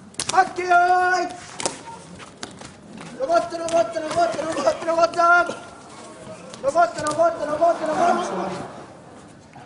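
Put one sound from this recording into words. A male sumo referee shouts in a high chanting voice in a large hall.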